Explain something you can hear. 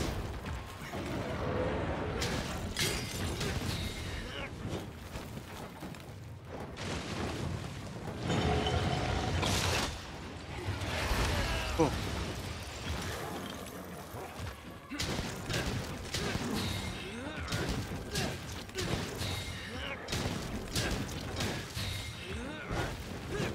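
Blades clash and slash with sharp metallic hits.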